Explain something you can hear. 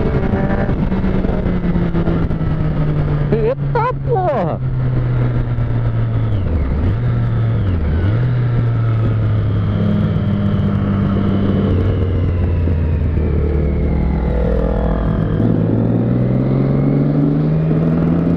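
A motorcycle engine hums steadily close by, with its pitch dipping and rising as gears change.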